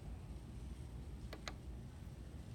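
A button clicks.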